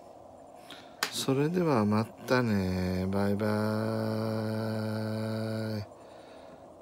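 A handheld game console plays a loud, swooping title jingle through its small speaker.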